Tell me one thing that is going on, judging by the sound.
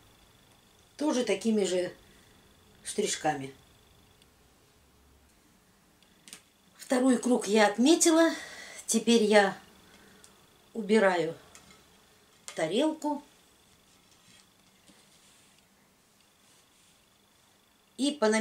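A middle-aged woman speaks calmly and close by, in short phrases.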